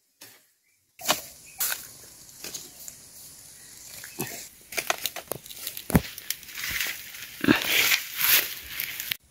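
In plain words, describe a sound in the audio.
Bamboo canes knock and clatter together.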